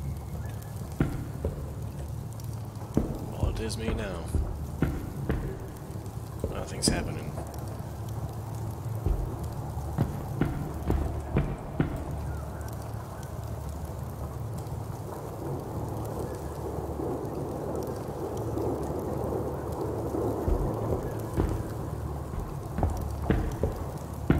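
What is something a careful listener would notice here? Footsteps thud on stone floor.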